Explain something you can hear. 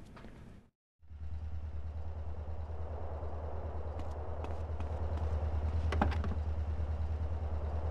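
A car engine idles with a low, steady rumble.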